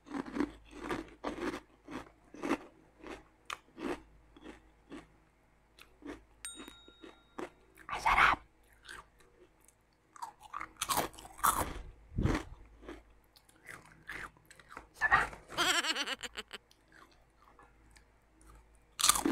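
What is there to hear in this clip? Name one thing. A young woman crunches crispy snacks close to a microphone.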